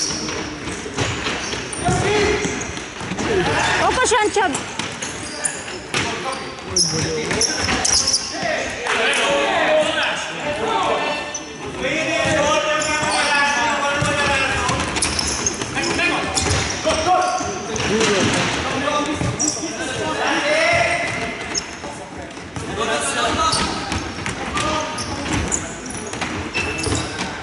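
Young men shout and call out to each other across a large echoing hall.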